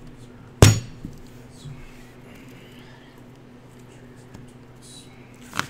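Playing cards are shuffled and dealt onto a table with soft slaps.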